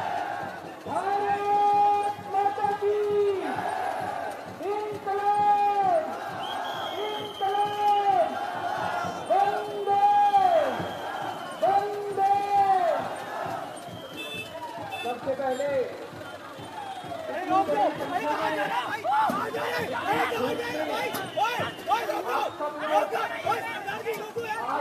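A crowd of men cheers and shouts outdoors.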